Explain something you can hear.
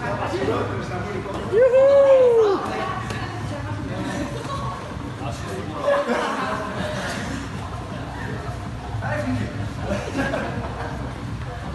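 Men and women talk and call out nearby in an echoing room.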